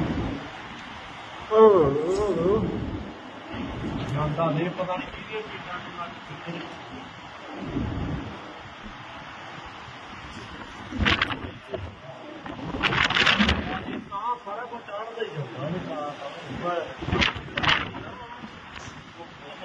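Strong wind gusts roar outdoors.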